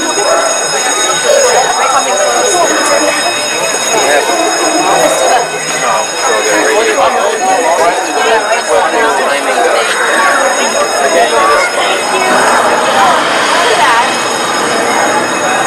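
Several young women talk and laugh excitedly close by.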